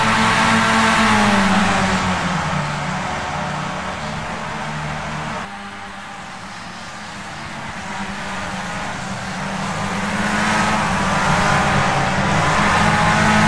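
Racing car engines roar at high revs, their pitch falling and rising through gear changes and corners.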